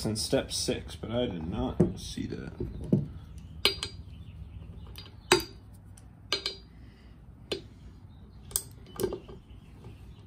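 Metal parts knock and clink together.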